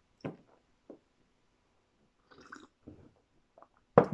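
A man sips a drink from a mug.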